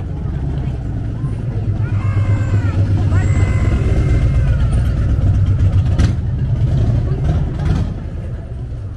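A motorcycle engine rumbles past close by.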